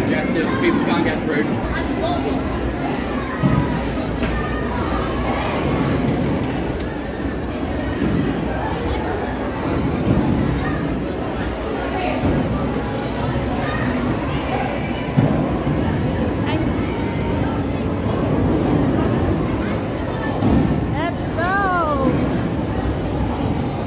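A crowd of people chatter in a busy echoing hall.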